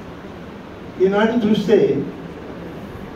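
An elderly man speaks briefly into a microphone.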